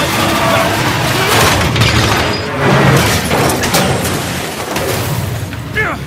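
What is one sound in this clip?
Metal crashes and scrapes along the ground.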